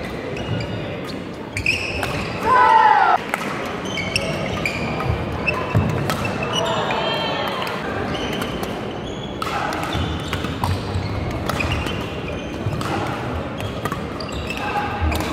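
Rackets smack a shuttlecock back and forth.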